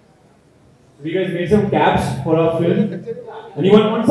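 A young man speaks with animation into a microphone over a loudspeaker.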